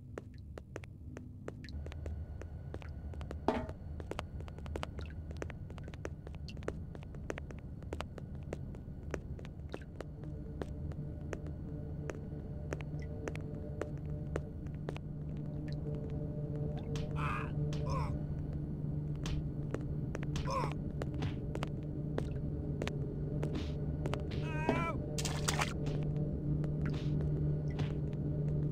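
Footsteps tap steadily on a hard stone floor.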